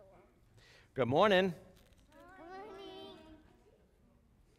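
Young children answer aloud in high voices.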